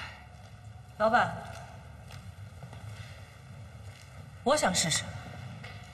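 A young woman speaks in short, calm phrases close by.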